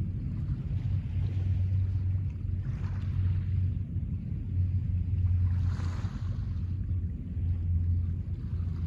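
Small waves lap gently on a pebble shore.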